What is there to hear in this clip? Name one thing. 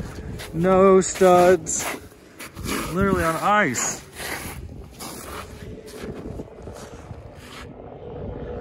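Boots crunch on packed snow.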